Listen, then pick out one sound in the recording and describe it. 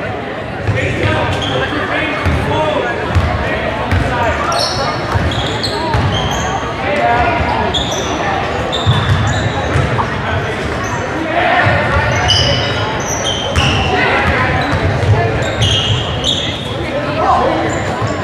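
Spectators talk and call out in a large echoing gym.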